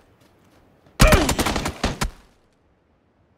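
A burst of loud gunshots rings out.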